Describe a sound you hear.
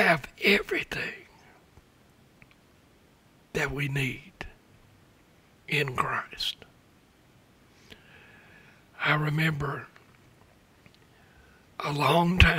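An elderly man speaks slowly into a microphone, with long pauses.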